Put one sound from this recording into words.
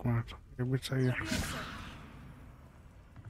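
A magical spell crackles and whooshes.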